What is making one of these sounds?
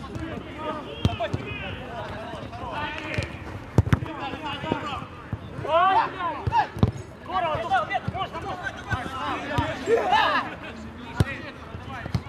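A football thuds off a kick.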